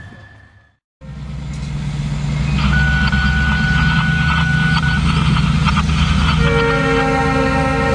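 Locomotive engines roar loudly as a train passes close by.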